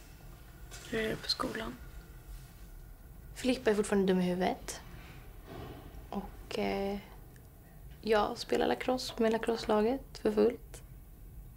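A young woman speaks calmly and gently, close by.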